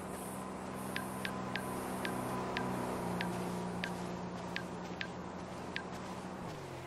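A phone menu clicks softly as it is scrolled.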